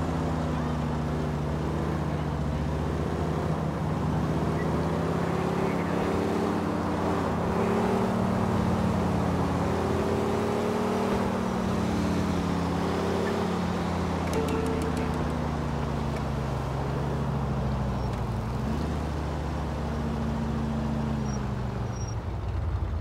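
A van engine drones steadily, rising and falling in pitch as it drives.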